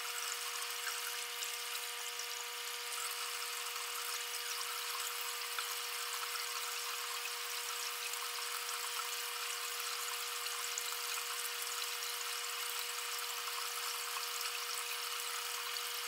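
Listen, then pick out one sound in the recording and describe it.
A hand swishes through shallow water.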